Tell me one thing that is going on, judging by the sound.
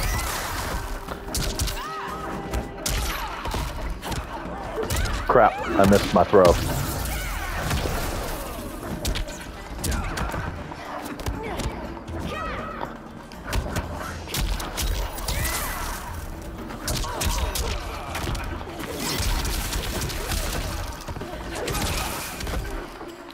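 Magical blasts whoosh and crackle.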